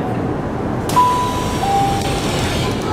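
A door chime sounds.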